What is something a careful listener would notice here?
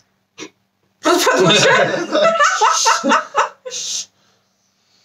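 A young woman laughs loudly close to a microphone.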